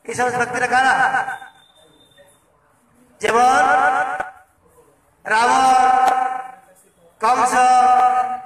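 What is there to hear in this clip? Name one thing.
A man chants in long sung phrases through a microphone and loudspeaker, pausing between them.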